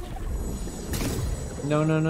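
A magic blast whooshes and crackles.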